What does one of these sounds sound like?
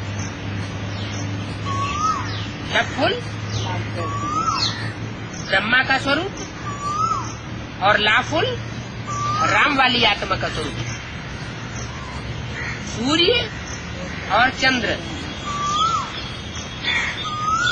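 An elderly man speaks calmly and thoughtfully, close by.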